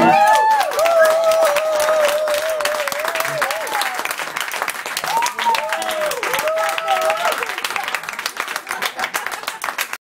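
Electric guitars play a rock tune loudly in a room.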